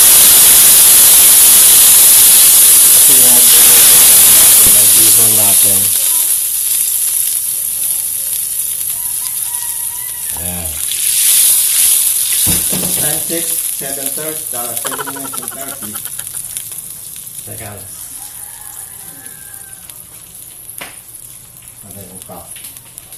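Liquid sizzles loudly in a hot pan, then slowly fades.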